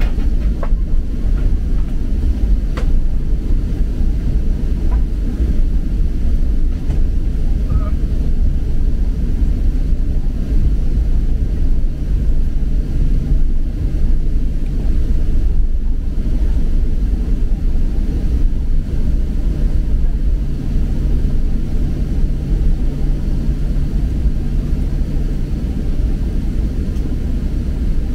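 An airliner's engines rumble steadily as the plane taxis, heard from inside the cabin.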